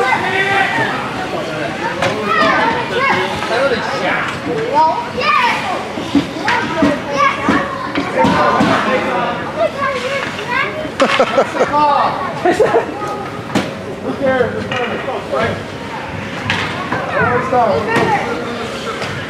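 Ice skates scrape on ice.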